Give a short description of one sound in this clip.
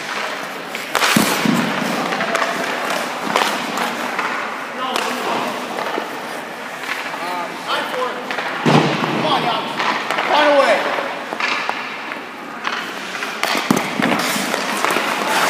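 A hockey puck cracks off a stick and smacks against pads.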